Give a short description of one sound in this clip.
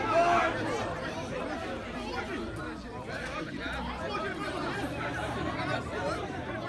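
Several men shout and argue outdoors at a distance.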